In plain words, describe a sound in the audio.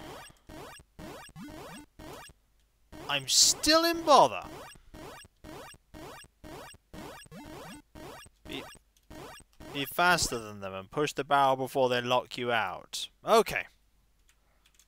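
Bleepy video game music plays with a quick, steady beat.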